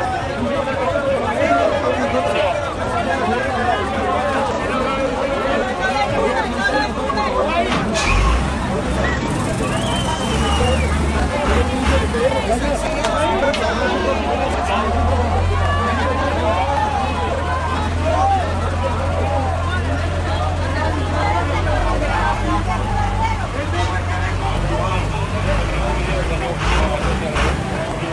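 A crowd of men and women shout and chant loudly close by.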